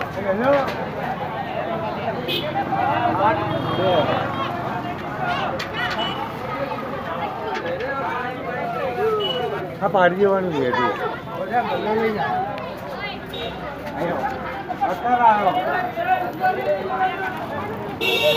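Several men shout and talk with excitement nearby, outdoors.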